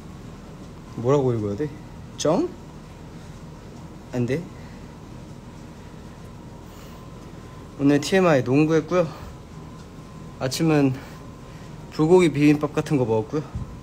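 A young man talks close to the microphone in short bursts, pausing between phrases.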